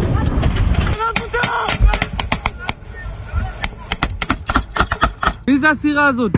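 Gunshots crack rapidly, one after another.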